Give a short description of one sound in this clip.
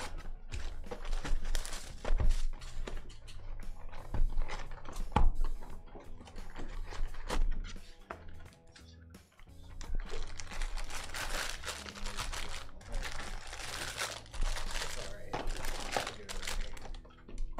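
Plastic wrap crinkles as a box is handled.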